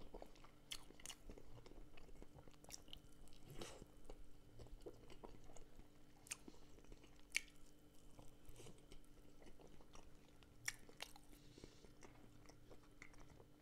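Fingers crackle and tear a crisp crust close to a microphone.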